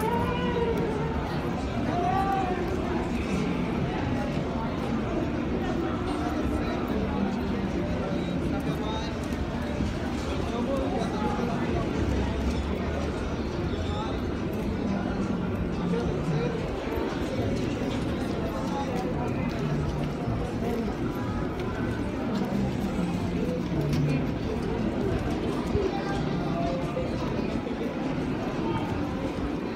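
Footsteps shuffle on paving stones.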